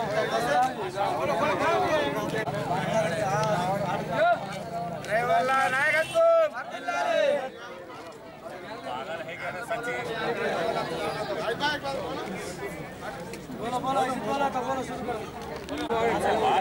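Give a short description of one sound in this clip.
A crowd of men chants slogans together outdoors.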